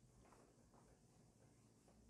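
An eraser rubs across a whiteboard.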